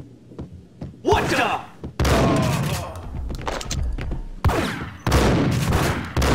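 A shotgun fires loud blasts that echo down a hallway.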